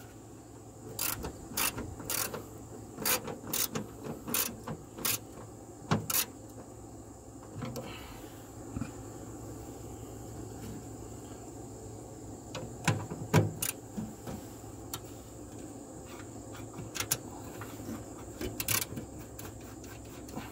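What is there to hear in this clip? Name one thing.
A ratchet wrench clicks rapidly as a bolt is turned.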